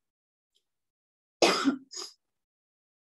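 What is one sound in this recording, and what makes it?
A woman coughs.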